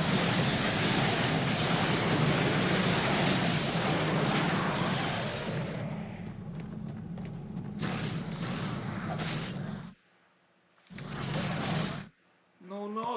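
Crackling magic blasts and clashing battle sounds from a computer game play loudly.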